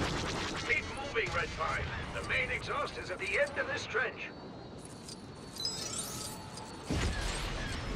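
Laser cannons fire in quick bursts.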